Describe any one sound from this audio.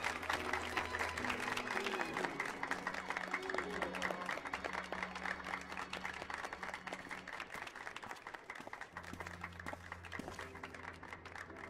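A crowd claps and applauds steadily, slowly fading.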